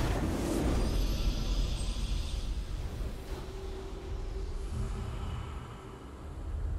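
A triumphant fanfare plays as a game round ends.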